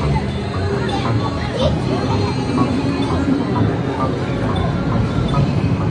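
Many arcade machines chime and clatter in a noisy hall.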